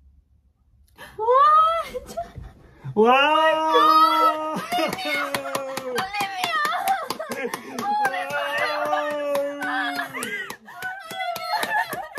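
Young women scream and shriek with excitement close by.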